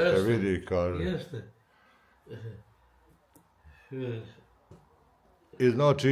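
A man laughs softly.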